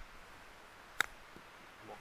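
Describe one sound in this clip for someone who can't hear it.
A golf ball is tapped with a putter.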